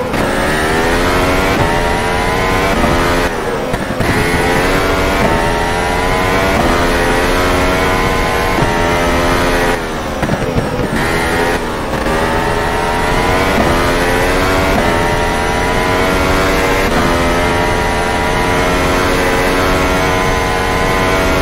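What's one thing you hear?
A racing car engine screams at high revs, rising in pitch through each gear and dropping sharply on gear changes.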